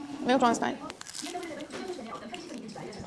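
Crusty bread crunches as a woman bites into it.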